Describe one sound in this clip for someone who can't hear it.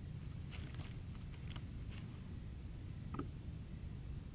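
A small animal rustles through dry leaves and debris close by.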